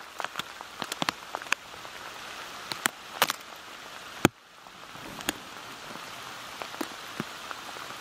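A goat tears at grass and chews close by.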